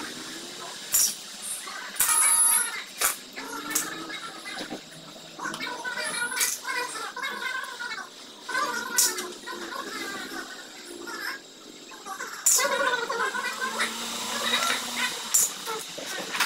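Metal tools clink against an engine.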